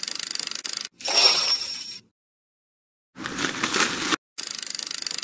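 An electronic slot machine plays a short bright win chime.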